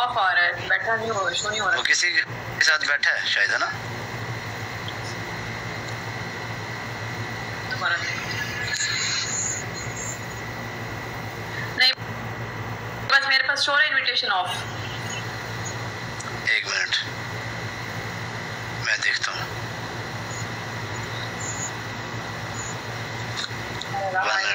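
A young woman speaks softly over an online call.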